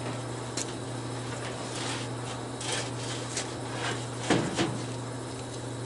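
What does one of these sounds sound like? A plastic hood knocks and rattles as it is lifted.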